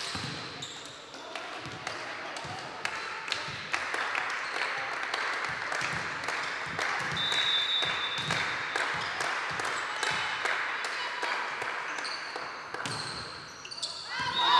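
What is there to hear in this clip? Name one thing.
A volleyball is struck with sharp slaps during a rally in a large echoing hall.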